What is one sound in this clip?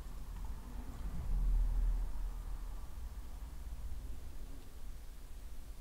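Beer pours from a bottle into a glass, fizzing softly.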